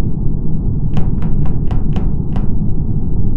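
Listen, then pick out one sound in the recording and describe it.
Quick footsteps tap on a metal floor.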